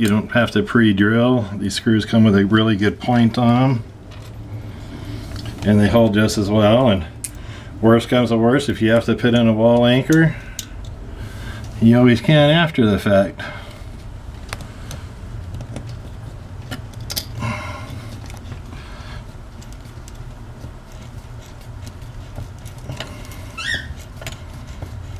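A screwdriver turns a screw in a metal clamp with faint clicks.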